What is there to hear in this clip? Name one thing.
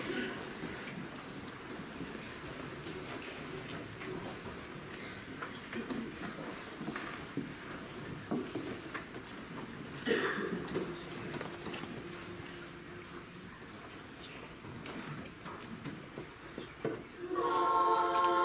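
An audience murmurs and rustles in a large echoing hall.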